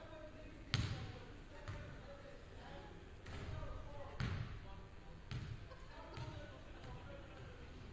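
A basketball bounces on a hardwood floor, echoing in a large hall.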